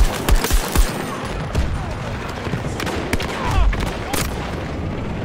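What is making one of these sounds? Gunshots and explosions crack and boom in quick bursts.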